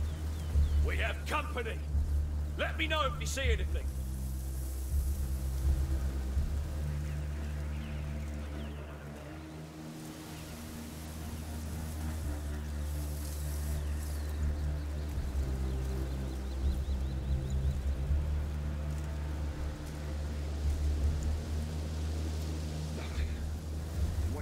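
Grass rustles as someone creeps through it.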